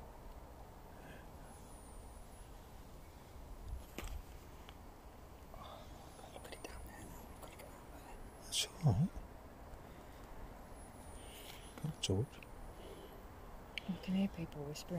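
A wooden pointer slides softly across a board.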